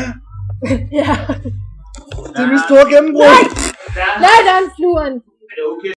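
A young woman laughs loudly close to a microphone.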